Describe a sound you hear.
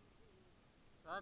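A hand bumps against the microphone.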